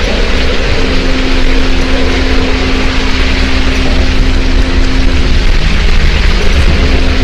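Heavy rain pours down steadily in a storm.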